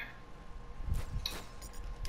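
A heavy weapon swings and strikes in quick blows.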